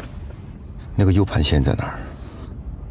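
A man answers in a low, firm voice, close by.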